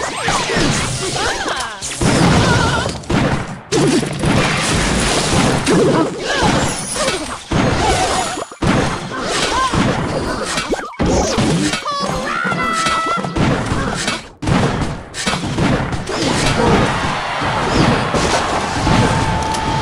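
Video game battle sounds clash and burst in quick succession.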